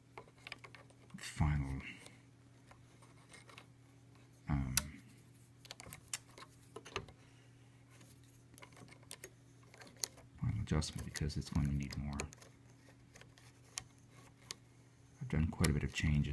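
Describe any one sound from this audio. A metal tool clicks and scrapes against wooden piano parts.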